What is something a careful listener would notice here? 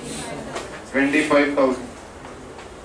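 A man speaks calmly through a microphone, as if lecturing.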